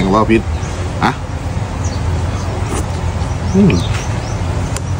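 A man slurps soup from a spoon.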